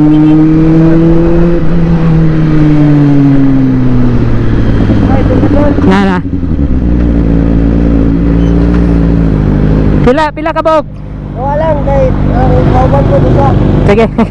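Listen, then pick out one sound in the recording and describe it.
A motorcycle engine hums steadily, with its pitch sliding down as the bike slows.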